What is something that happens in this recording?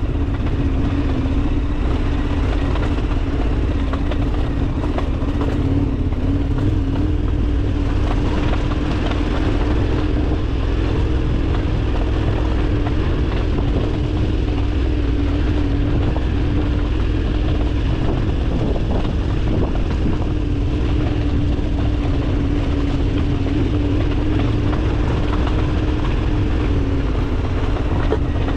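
Bicycle tyres crunch and rattle over loose gravel and stones.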